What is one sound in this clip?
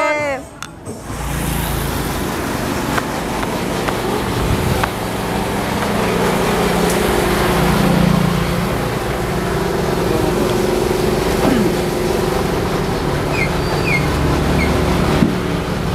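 Street noise hums steadily outdoors.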